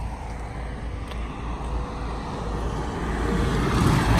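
A truck approaches on a road.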